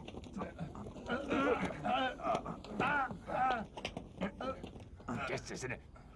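A group of men talk loudly over one another.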